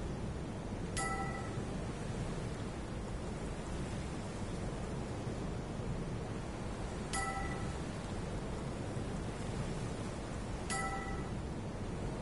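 A soft electronic chime sounds three times, each a short bright tone.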